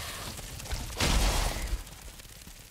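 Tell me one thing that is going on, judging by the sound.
A heavy blow lands with a loud burst.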